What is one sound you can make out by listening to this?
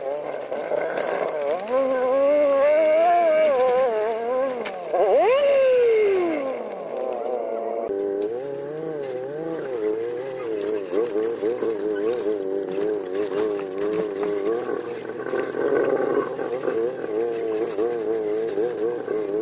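A vehicle engine hums and revs unevenly while driving over rough ground.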